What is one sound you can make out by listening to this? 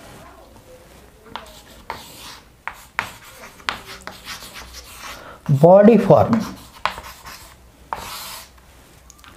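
Chalk taps and scratches on a chalkboard.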